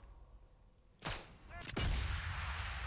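A suppressed rifle fires a single shot.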